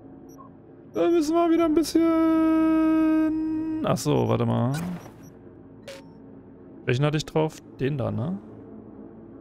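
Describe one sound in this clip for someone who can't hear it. A man speaks into a close microphone with animation, in short bursts.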